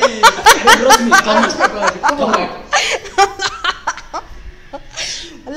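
Another young woman giggles softly close by.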